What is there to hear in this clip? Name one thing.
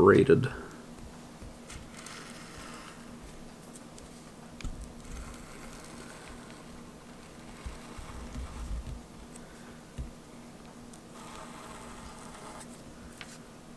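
A razor blade scrapes and scores softly across paper.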